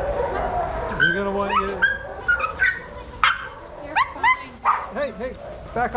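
A dog yelps excitedly close by.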